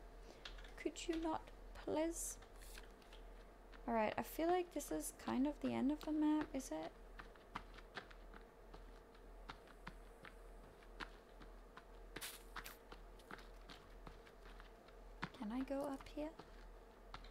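A young woman talks with animation, close to a microphone.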